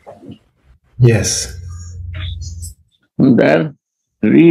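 A man speaks briefly through an online call.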